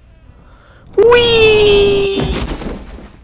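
A young man screams loudly and suddenly, close to a microphone.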